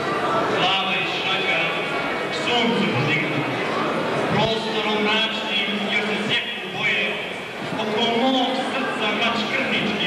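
A small choir of men and women sings together in a hall with some echo.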